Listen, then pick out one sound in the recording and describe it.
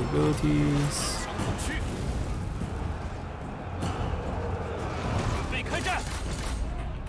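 Weapons clash in a rumbling battle.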